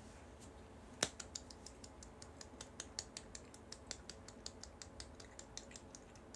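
A young woman claps her hands lightly and quickly.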